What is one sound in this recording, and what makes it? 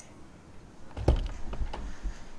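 A door thumps open.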